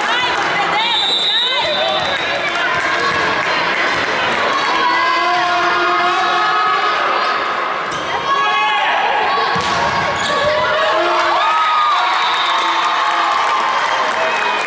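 Sneakers squeak sharply on a hard court in a large echoing hall.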